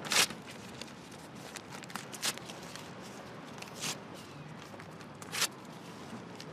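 Paper crinkles in a woman's hands.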